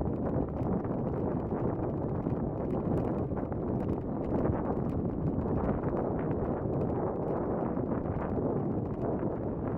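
Wind rumbles and buffets steadily against the microphone outdoors.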